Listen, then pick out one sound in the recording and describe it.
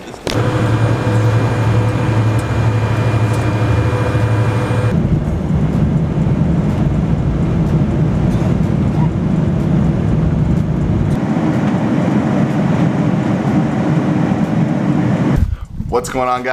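A jet engine roars steadily from inside an aircraft cabin.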